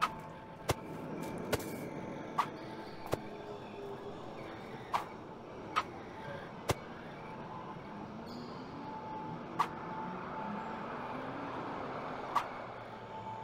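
A pigeon pecks at crumbs with short sharp taps.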